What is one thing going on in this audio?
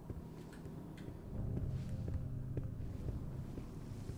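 Footsteps shuffle slowly on a gritty floor.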